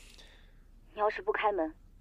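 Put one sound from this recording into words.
A young woman speaks through a door intercom speaker.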